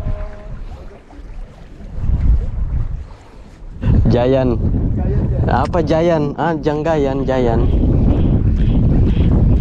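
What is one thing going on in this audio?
Small waves slosh and lap.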